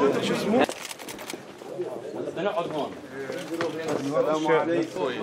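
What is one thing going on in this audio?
Several men talk loudly over one another close by.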